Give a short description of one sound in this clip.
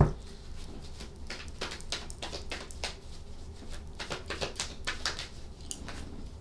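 Cards shuffle and flick in a woman's hands.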